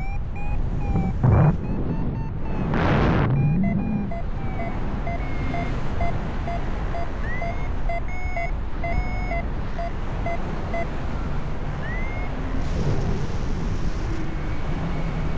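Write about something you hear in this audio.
Wind rushes and buffets steadily past the microphone high in the open air.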